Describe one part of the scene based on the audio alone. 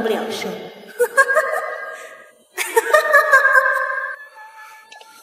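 A young woman laughs mockingly.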